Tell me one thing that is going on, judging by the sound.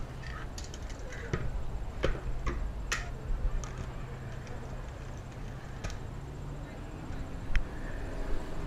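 Bottles and cups clink on a countertop.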